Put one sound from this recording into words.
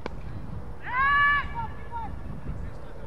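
A man shouts loudly across an open field.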